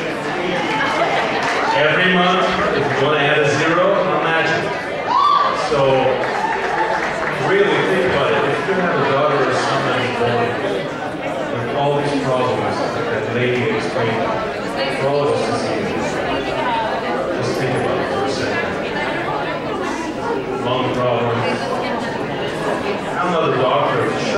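A large crowd murmurs and chatters.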